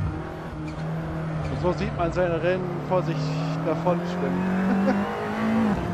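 Tyres squeal through a corner.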